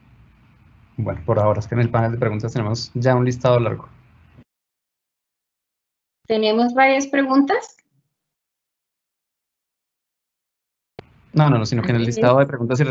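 A young woman speaks calmly through an online call, with pauses.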